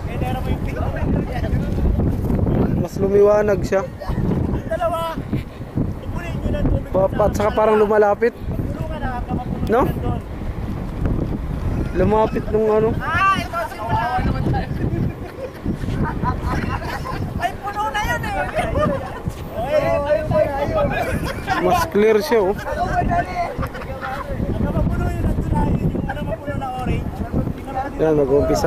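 A group of adults and children shout and call out to each other outdoors.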